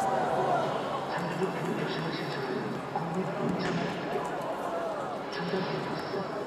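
A crowd of spectators chatters nearby.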